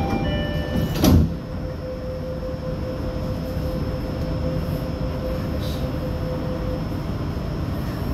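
A train pulls in and hums steadily close by.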